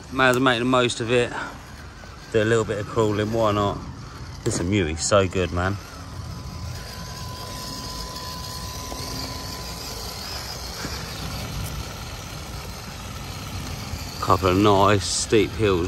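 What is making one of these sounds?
A small electric motor whines as a toy truck crawls along.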